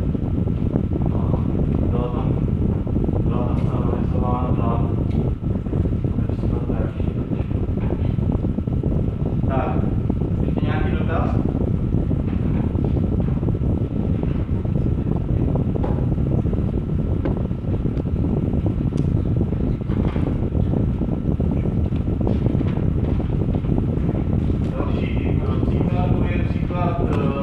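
A man lectures in a calm, steady voice.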